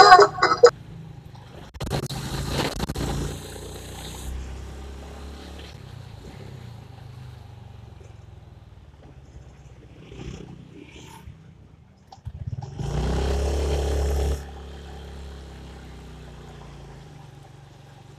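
A motorcycle engine hums steadily while riding along a street.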